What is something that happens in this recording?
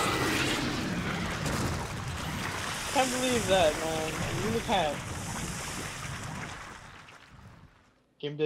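A wet, writhing mass hisses and squelches as it collapses and dissolves.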